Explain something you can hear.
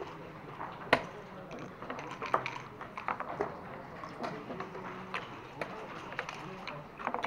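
Plastic game pieces click and clack against a board.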